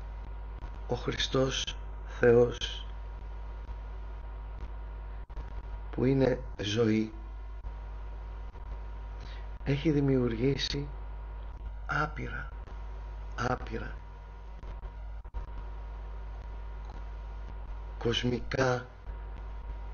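A middle-aged man speaks calmly in short phrases with pauses, heard through an online call.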